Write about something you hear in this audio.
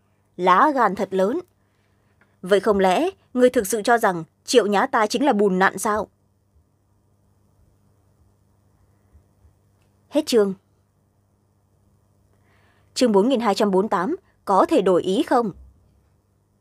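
A young woman reads aloud calmly and close to a microphone, with pauses.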